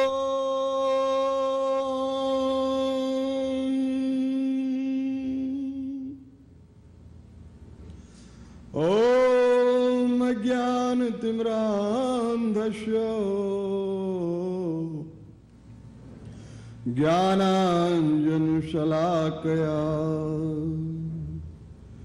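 An elderly man chants in long, drawn-out sung phrases, heard through a microphone.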